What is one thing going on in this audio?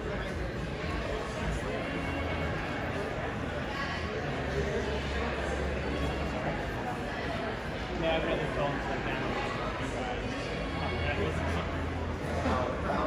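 Many voices murmur nearby in a busy room.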